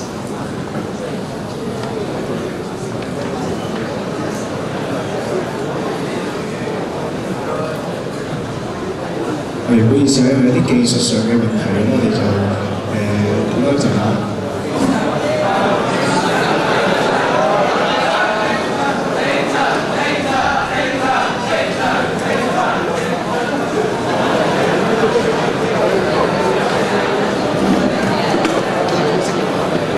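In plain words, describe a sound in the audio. An audience murmurs in a large echoing hall.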